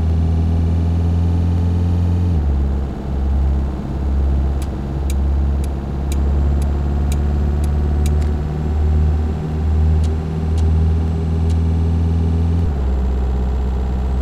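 A car engine drones steadily inside the car.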